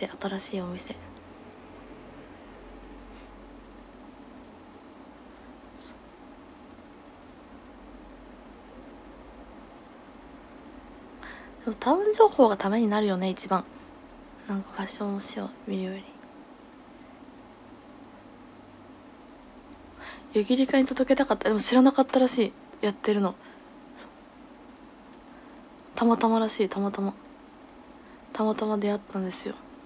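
A young woman talks softly and casually into a close microphone, with long pauses.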